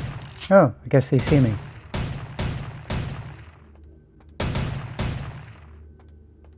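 Gunshots fire in rapid bursts, ringing loudly in an echoing hall.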